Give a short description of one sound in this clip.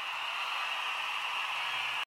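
A crowd claps hands.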